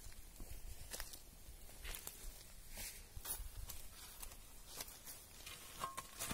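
Footsteps crunch on loose dirt and gravel.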